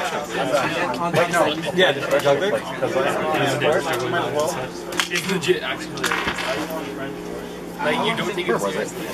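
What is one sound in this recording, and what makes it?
Playing cards shuffle and slide between hands.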